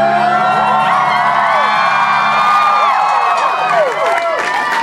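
Loud music plays through speakers.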